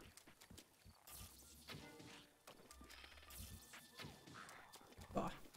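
Footsteps run through wet grass.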